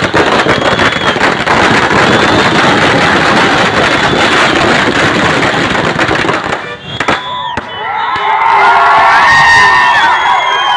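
A large crowd of young men shouts and cheers loudly outdoors.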